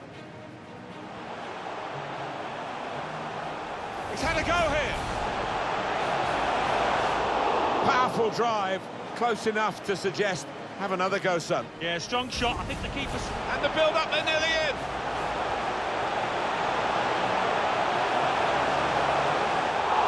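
A large stadium crowd roars, swelling louder over time.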